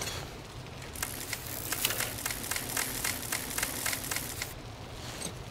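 A hand-cranked charger whirs with rapid clicking.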